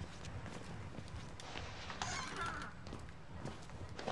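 A wooden stall door creaks as it swings open.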